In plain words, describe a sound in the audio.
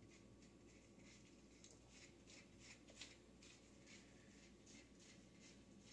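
A brush swishes through wet hair in quick repeated strokes.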